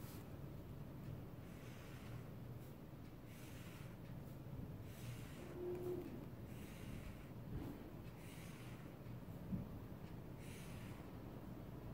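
A marker squeaks softly across a paper page.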